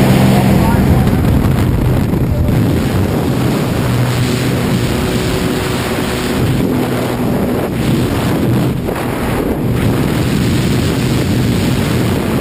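Wind rushes loudly through an open aircraft door.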